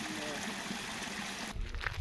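Water trickles over stones.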